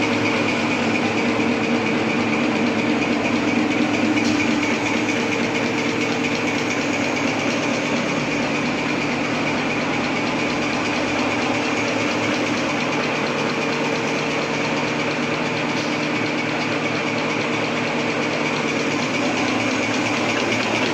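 A large machine whirs and clatters steadily with a rhythmic mechanical noise.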